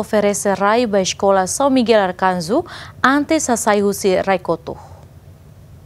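A woman speaks clearly and steadily into a close microphone.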